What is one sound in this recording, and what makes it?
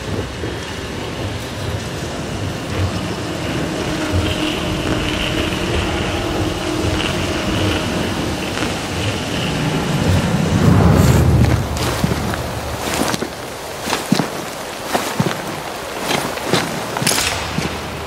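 Footsteps thud and crunch quickly over leaves and twigs.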